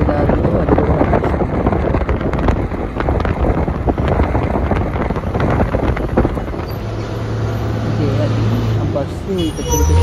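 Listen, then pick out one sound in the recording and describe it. Wind buffets loudly past the car.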